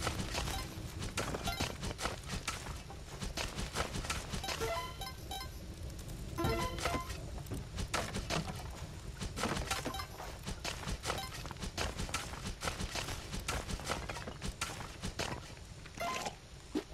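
A video game plays quick clanking hits.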